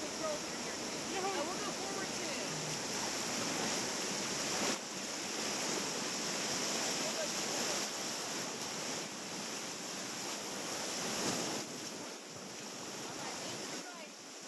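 Rapids rush and roar close by.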